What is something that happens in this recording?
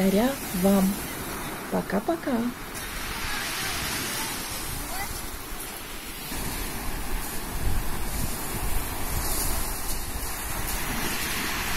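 Waves break and wash over a pebble beach outdoors.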